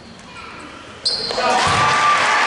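A referee's whistle blows sharply in a large echoing gym.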